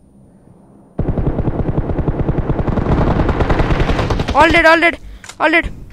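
Rapid gunfire rattles in a long burst.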